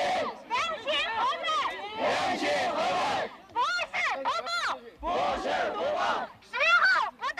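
A young woman shouts through a megaphone outdoors.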